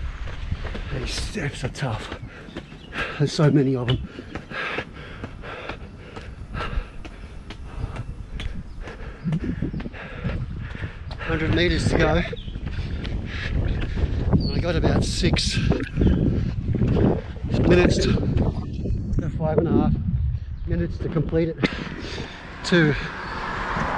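A middle-aged man talks with animation close to a microphone, slightly out of breath.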